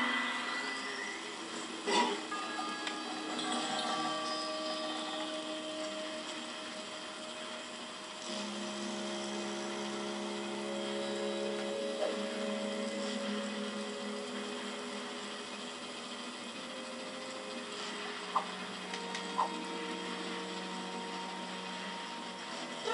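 Calm game music plays with slow, held tones.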